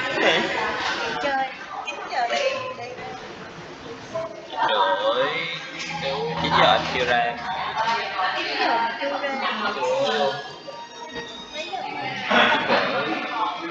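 A young woman speaks calmly and clearly over an online call.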